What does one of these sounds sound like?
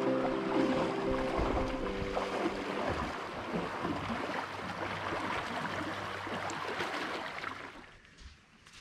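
Water splashes as a man wades through shallow water.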